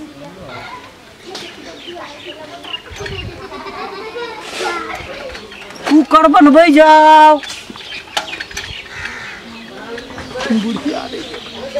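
A bicycle rattles as it is pushed along.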